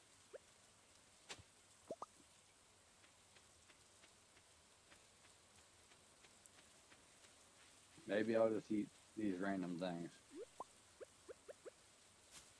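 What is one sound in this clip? Soft footsteps patter on a dirt path.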